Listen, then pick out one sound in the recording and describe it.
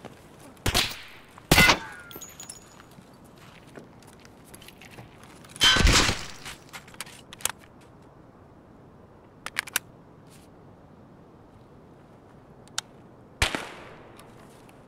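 Gunshots ring out loudly, each followed by an echo.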